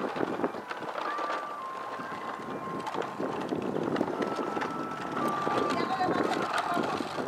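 A handheld meter gives off a steady electronic tone that steps in pitch.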